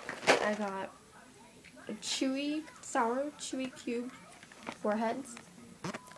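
A candy packet crinkles in a girl's hands.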